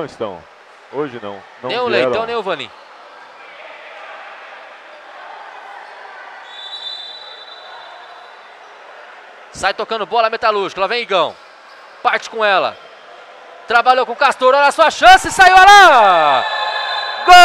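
Sneakers squeak sharply on a hard indoor court.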